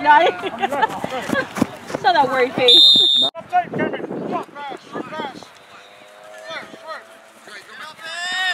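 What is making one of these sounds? Young boys shout and call out close by, outdoors.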